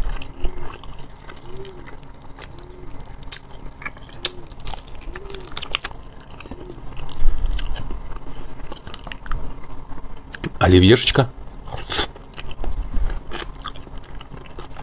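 A man chews food loudly and wetly close to a microphone.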